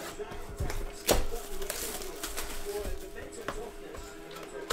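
Plastic wrap crinkles as it is torn off.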